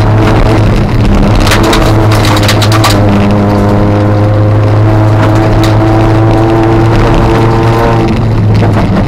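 A car engine roars loudly from inside the cabin, rising and falling in pitch.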